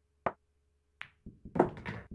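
Pool balls clack against each other.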